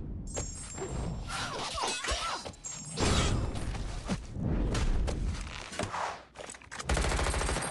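Blades slash and strike in quick, sharp hits.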